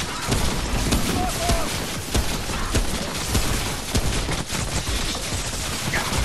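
A blade slashes and strikes a monster with heavy impacts.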